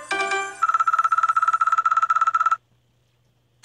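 A game's score counter ticks up rapidly with a steady beeping tone.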